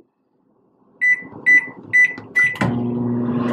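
Microwave buttons beep several times.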